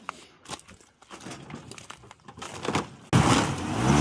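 Ice crunches and cracks underfoot.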